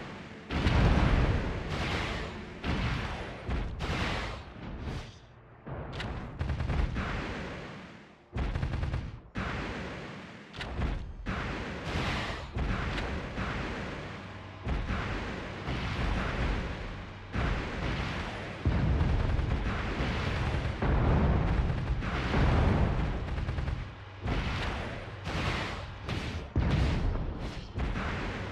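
Game gunfire bangs in quick shots.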